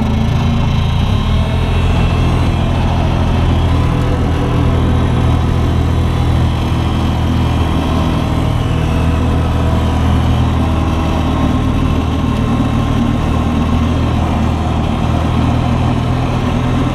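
Metal parts of a loader rattle and clank as it drives over rough ground.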